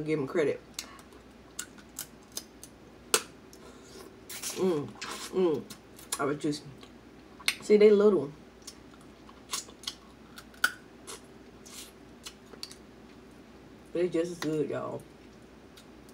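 A young woman slurps and smacks her lips while eating.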